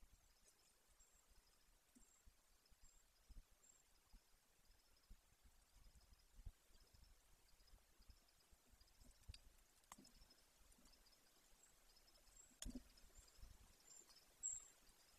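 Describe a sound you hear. A large bird shuffles and rustles on a nest of dry sticks, close by.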